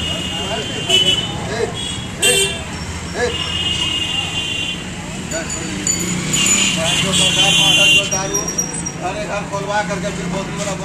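Several men talk loudly and excitedly nearby, outdoors.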